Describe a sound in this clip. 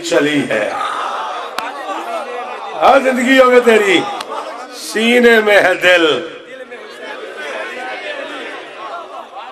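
A man recites loudly and passionately through a microphone.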